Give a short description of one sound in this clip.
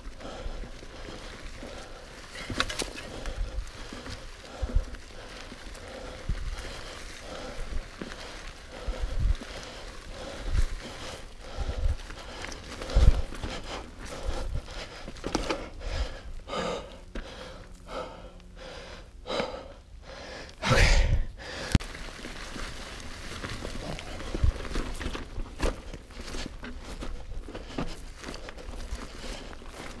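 Bicycle tyres roll and crunch over dry leaves.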